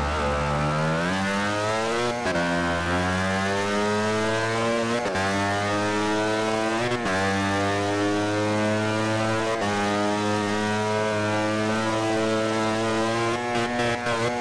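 A motorcycle engine revs high, climbing in pitch and dropping briefly with each gear change.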